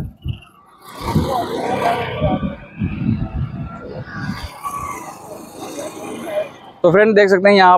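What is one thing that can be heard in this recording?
A motorcycle passes by on a road.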